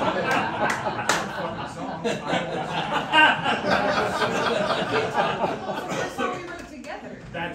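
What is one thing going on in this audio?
A woman and a man sing together.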